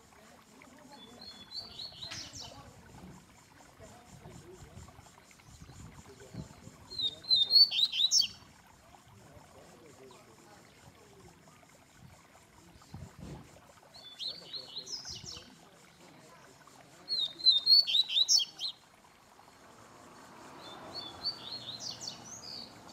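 A caged bird sings short bursts of bright, quick chirping song, close by.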